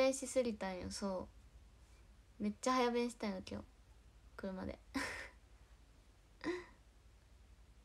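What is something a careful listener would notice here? A young woman talks cheerfully, close to a phone microphone.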